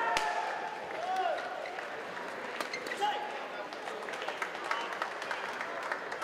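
A shuttlecock is struck sharply with rackets in a quick rally.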